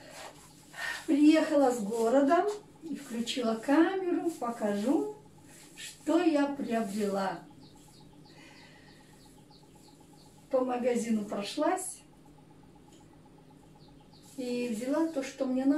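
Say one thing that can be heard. An elderly woman speaks calmly and close by.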